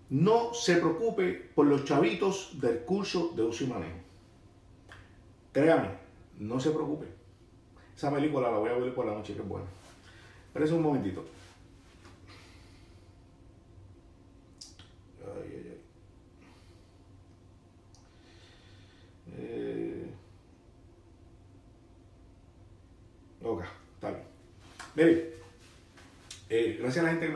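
A middle-aged man speaks with animation close to the microphone, in pauses.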